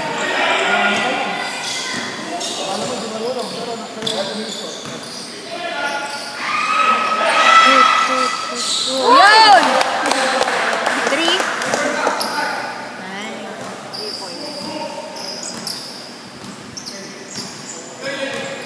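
Young men shout and call out across an echoing gym.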